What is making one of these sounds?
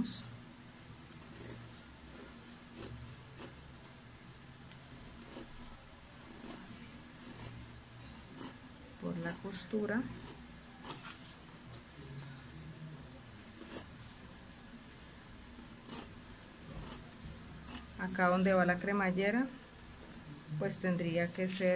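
Scissors snip through paper with short, crisp cuts.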